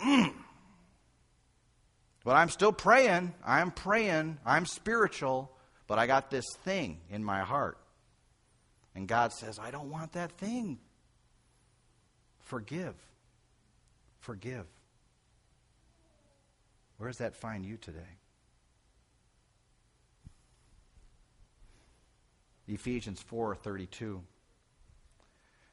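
An elderly man speaks with animation through a microphone, with pauses, in an echoing hall.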